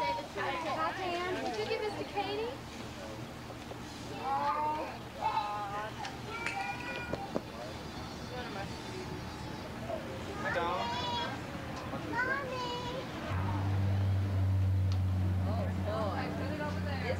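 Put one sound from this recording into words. Young children chatter and shout outdoors.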